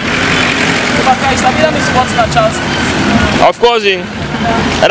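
Men talk nearby on a busy street.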